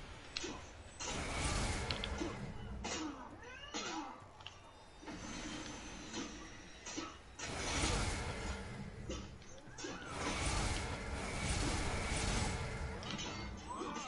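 Magical whooshing bursts sweep through the game.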